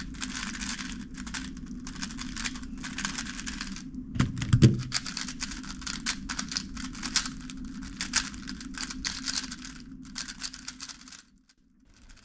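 A puzzle cube clicks and rattles as it is turned quickly.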